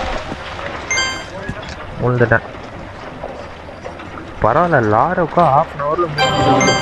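Cartoonish game sound effects chime and jingle.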